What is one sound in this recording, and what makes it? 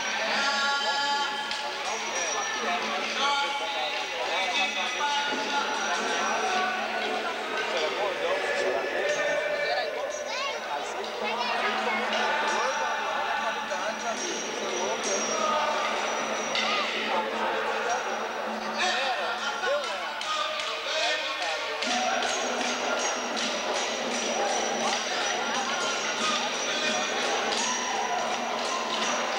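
A crowd of people sings and chants together outdoors.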